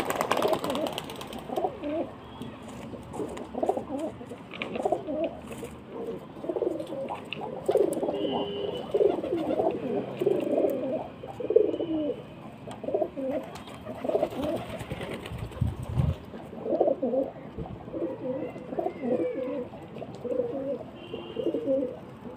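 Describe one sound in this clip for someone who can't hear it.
Pigeons coo in low, throaty bursts close by.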